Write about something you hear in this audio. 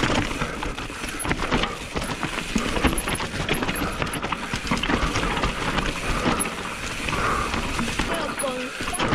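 A mountain bike's frame and chain clatter over bumps.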